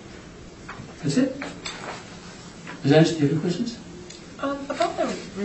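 A woman speaks calmly in a small room, heard from a distance.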